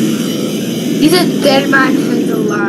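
A child speaks excitedly into a microphone.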